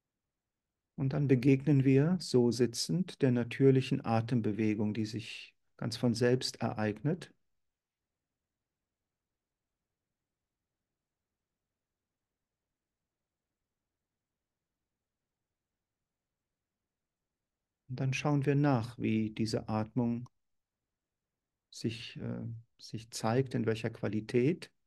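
An older man speaks calmly through an online call, with long pauses.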